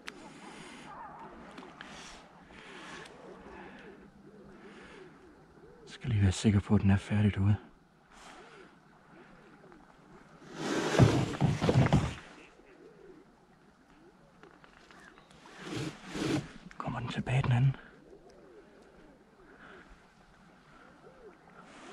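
Water laps softly against a small boat.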